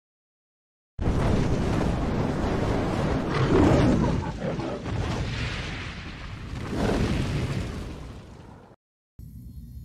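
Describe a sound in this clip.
A fiery explosion roars and rumbles.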